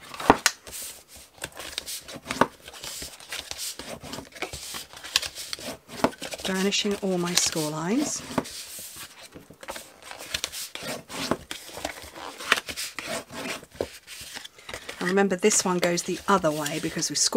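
Card stock rustles and slides across a mat.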